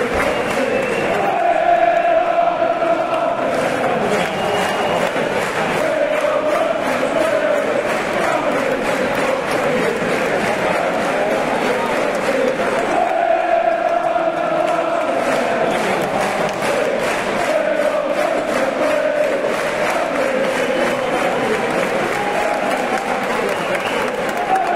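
A large crowd sings a chant together in an open stadium.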